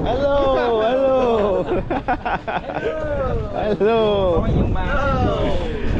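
Young men laugh close by.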